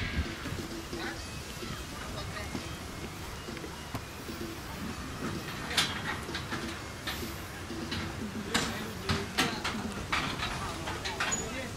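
A football thuds as it is kicked.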